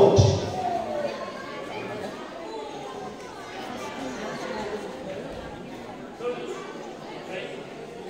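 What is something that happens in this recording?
Several men and women talk together nearby.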